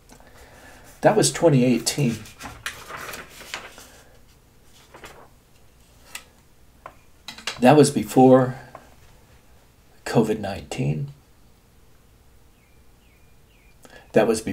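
An older man speaks calmly and close to a microphone, in short bursts with pauses.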